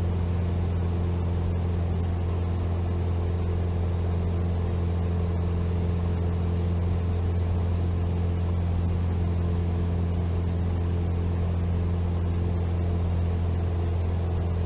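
A small plane's propeller engine drones steadily.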